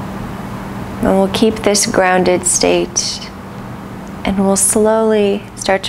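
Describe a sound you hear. A woman speaks calmly and softly close by.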